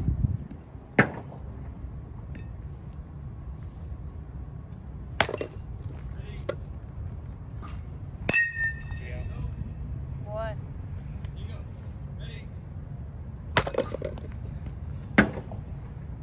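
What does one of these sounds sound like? A bat sharply cracks against a ball several times.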